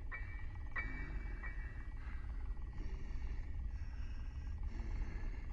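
A creature crawls over creaking wooden floorboards with soft thumps.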